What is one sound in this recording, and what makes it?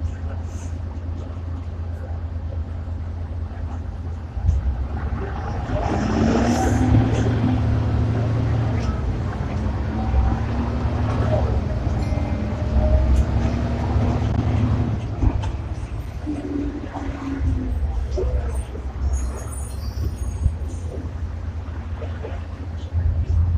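A bus engine rumbles steadily inside the cabin.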